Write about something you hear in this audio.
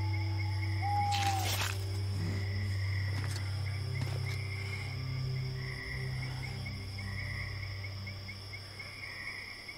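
Heavy footsteps crunch on dirt.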